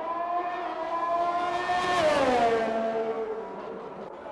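A racing car engine screams past and drops in pitch as it goes by.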